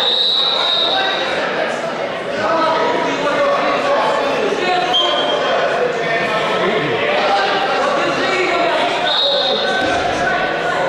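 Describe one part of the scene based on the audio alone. A crowd of spectators talks and calls out in a large echoing hall.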